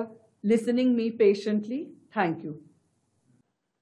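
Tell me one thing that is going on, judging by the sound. A middle-aged woman speaks calmly and clearly into a microphone.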